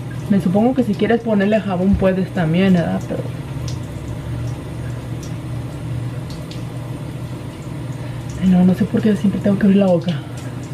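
A young woman talks close by, calmly and with animation.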